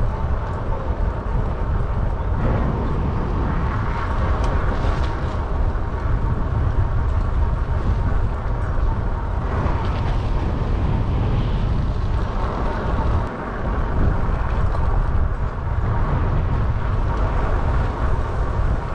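Wind rushes loudly and steadily past.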